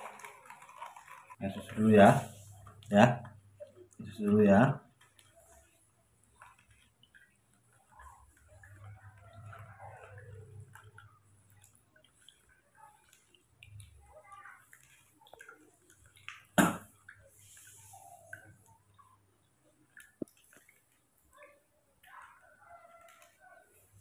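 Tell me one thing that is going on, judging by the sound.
A spoon clinks against a plastic cup while stirring.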